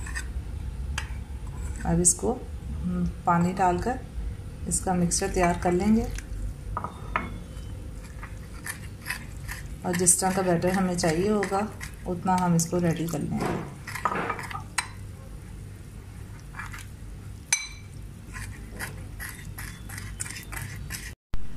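A metal spoon scrapes and clinks against a bowl.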